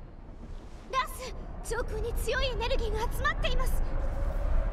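A man calls out urgently.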